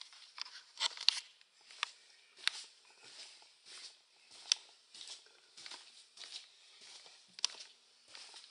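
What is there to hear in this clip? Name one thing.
Footsteps thud and creak on carpeted stairs going down.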